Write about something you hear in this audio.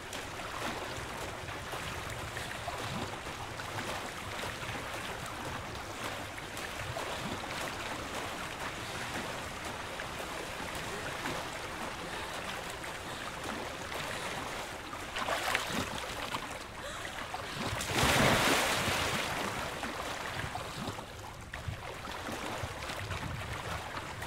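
Water splashes and swirls steadily as a swimmer strokes along.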